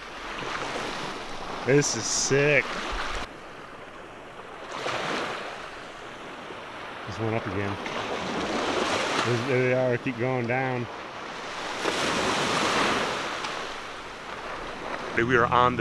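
Small waves wash gently onto a shore, in a steady rushing surge.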